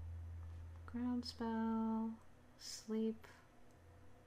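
Short electronic tones chime as menu items are selected.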